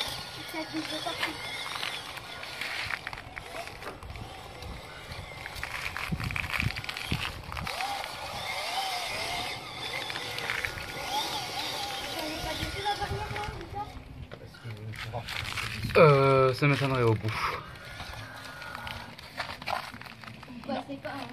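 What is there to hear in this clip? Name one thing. Plastic tyres crunch over dry pine needles and stones.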